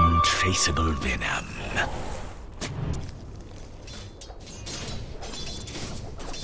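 Game sound effects of spells and combat play.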